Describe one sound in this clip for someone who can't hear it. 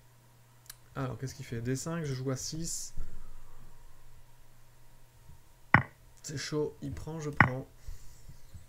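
A man talks casually and close through a microphone, in short bursts.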